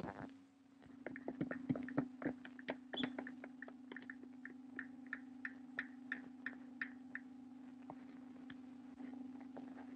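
A small hammer taps on a shoe at a steady pace.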